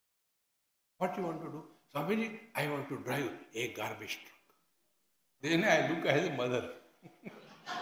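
An elderly man speaks with animation into a microphone.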